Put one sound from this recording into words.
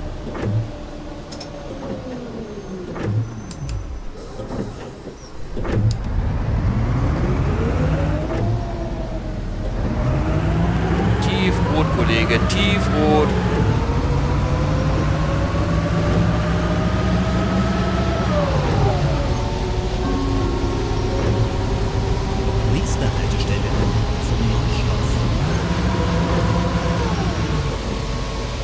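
Rain patters on a windscreen.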